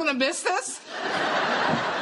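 A woman speaks up anxiously nearby.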